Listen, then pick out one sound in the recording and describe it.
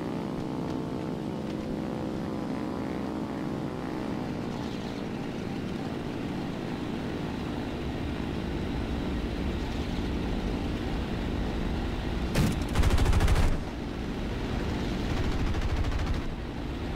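An aircraft engine drones steadily.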